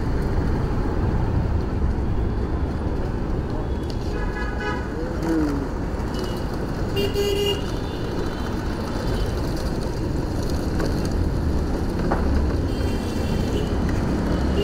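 A scooter motor hums steadily while riding.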